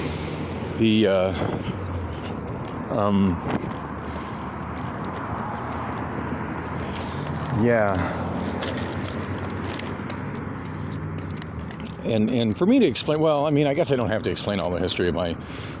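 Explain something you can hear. Footsteps tap along a concrete pavement outdoors.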